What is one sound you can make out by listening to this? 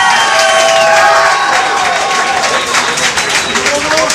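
A crowd cheers and shouts loudly.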